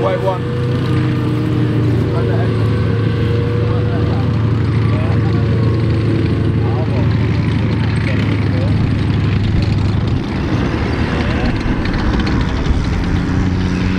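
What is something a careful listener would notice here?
Tank tracks clatter and squeak over dry ground.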